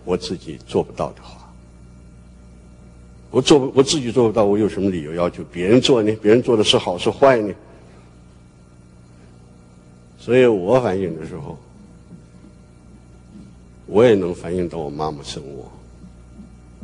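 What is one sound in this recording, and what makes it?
An elderly man speaks slowly and earnestly into a microphone, with pauses.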